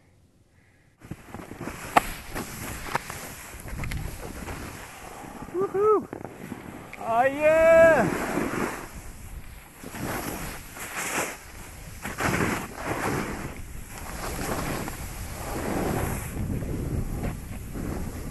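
A snowboard scrapes and hisses over snow.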